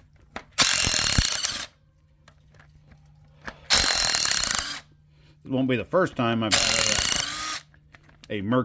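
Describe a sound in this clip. An impact wrench whirs and rattles in short loud bursts.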